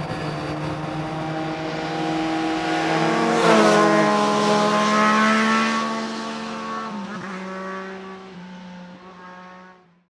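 Motorcycles roar past close by and fade into the distance.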